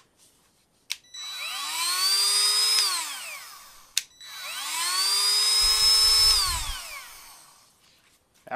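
A rotary tool whirs up to speed, runs with a high whine and winds down, twice.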